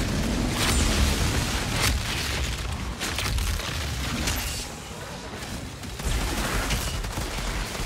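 Guns fire in sharp bursts.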